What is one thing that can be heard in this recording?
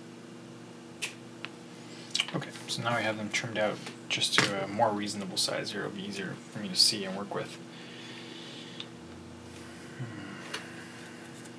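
Small parts click and tap as hands handle them.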